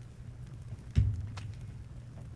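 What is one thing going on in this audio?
A wooden chair thumps down onto a wooden floor.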